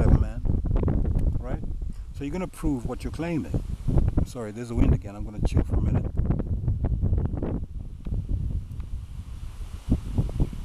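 Wind blows through tall grass and bushes outdoors.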